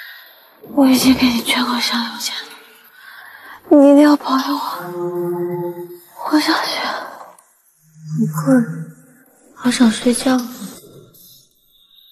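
A young woman speaks weakly and softly, close by.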